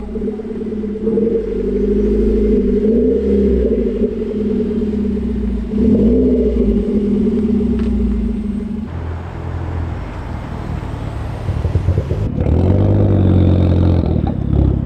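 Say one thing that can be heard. A car engine revs up sharply and drops back.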